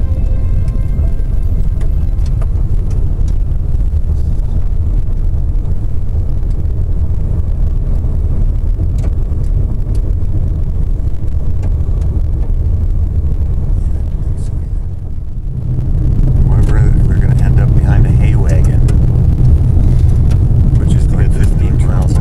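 A car's tyres rumble steadily on a gravel road from inside the car.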